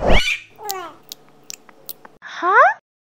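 A cartoon creature munches on food with quick crunches.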